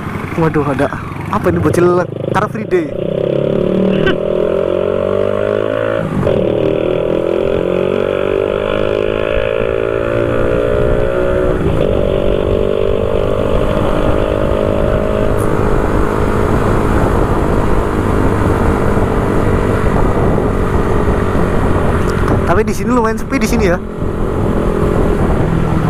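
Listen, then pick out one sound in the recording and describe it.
A motorcycle engine hums close by, rising and falling in pitch as it speeds up and shifts gears.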